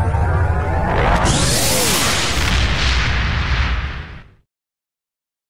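Spaceship weapons fire with loud, rushing zaps.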